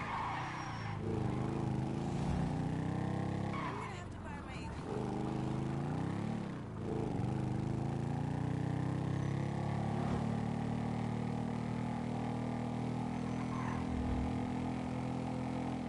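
A motorcycle engine roars steadily, rising and falling in pitch as it speeds up and slows.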